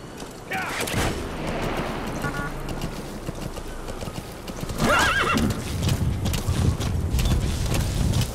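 Horse hooves thud on dirt at a gallop.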